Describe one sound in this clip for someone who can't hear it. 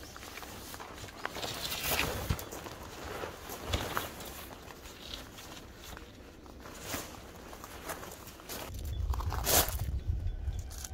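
Tent fabric rustles and flaps as a man handles it.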